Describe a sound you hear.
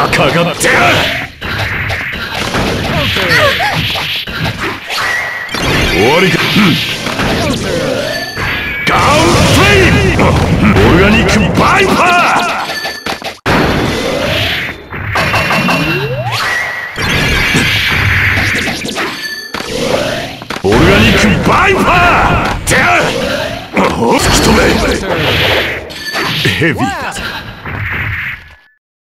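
Fighting game hits and slashes crack and thump in quick bursts.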